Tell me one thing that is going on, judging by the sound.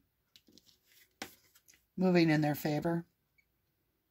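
A card taps softly onto a game board.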